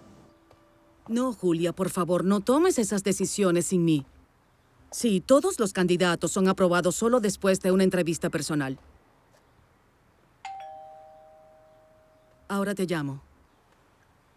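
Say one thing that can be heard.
A woman speaks on a phone, calmly and close by.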